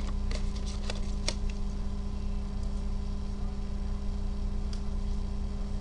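Plastic packaging crinkles and taps as a card is handled close by.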